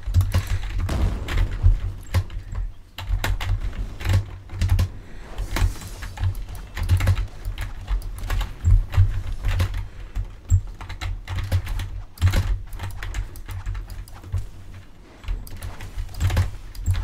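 Sharp hits and slashes crack again and again in a fight.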